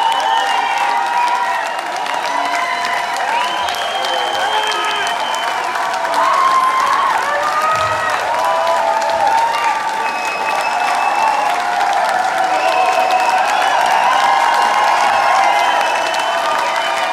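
A large crowd sings and cheers loudly in a big echoing hall.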